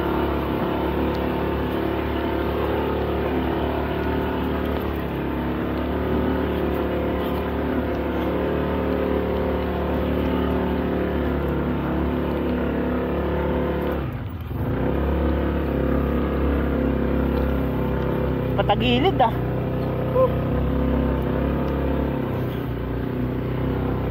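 A vehicle engine hums while the vehicle travels along a rutted dirt track.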